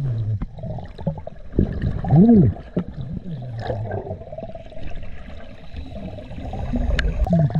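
Air bubbles gurgle and rush upward underwater from a diver's regulator.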